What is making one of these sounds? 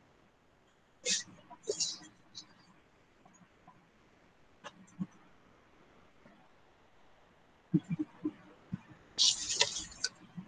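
A young woman speaks quietly in short bursts over an online call.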